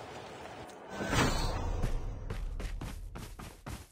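A helicopter's rotor thumps and whirs nearby.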